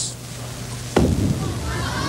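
A bowling ball thuds onto a lane.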